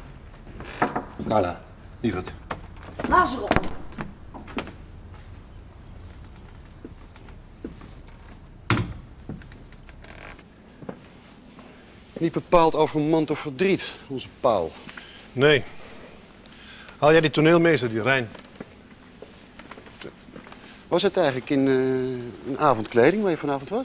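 An elderly man speaks nearby.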